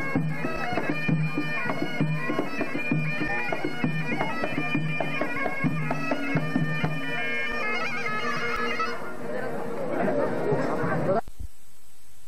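A bagpipe plays a loud, droning tune.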